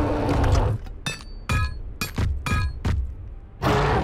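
Heavy blows thud and clang in quick succession.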